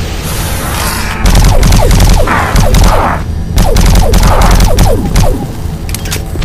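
A plasma gun fires rapid zapping shots.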